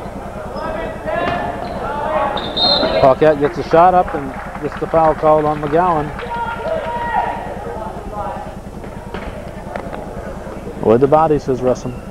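Young men shout loudly across an echoing gym.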